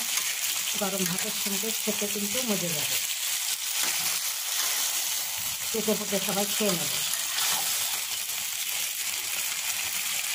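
A metal spatula scrapes and stirs in a pan.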